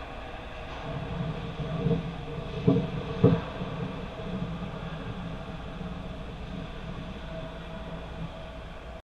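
A metal goal frame scrapes and rumbles as it is pushed across ice.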